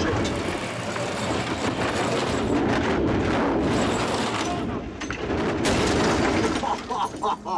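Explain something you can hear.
A car crashes and scrapes down into a pit.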